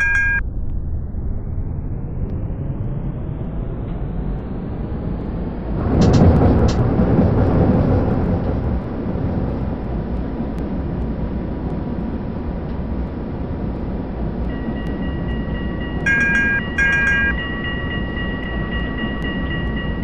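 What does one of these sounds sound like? Tram wheels rumble steadily on the rails.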